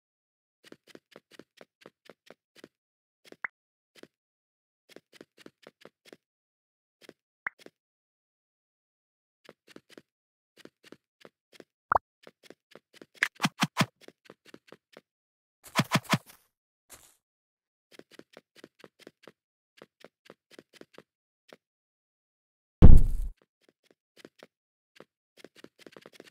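Quick game footsteps patter steadily.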